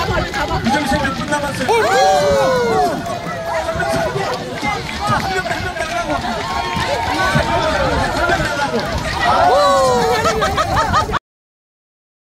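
A crowd of people chatter and shout outdoors.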